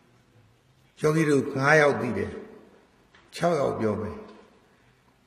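An elderly man speaks calmly into a microphone, in short phrases.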